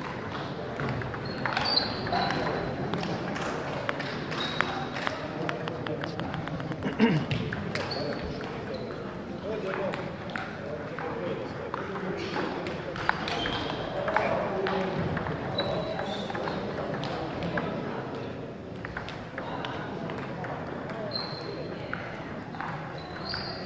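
The sounds echo around a large hall.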